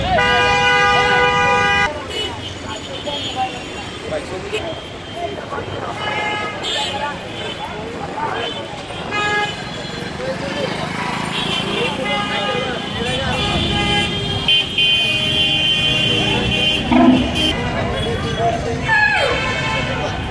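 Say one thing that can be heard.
A crowd of people chatters in the background.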